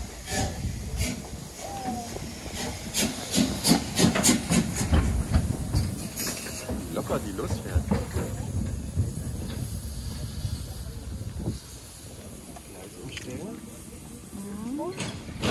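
A steam locomotive chugs and rumbles as it pulls away.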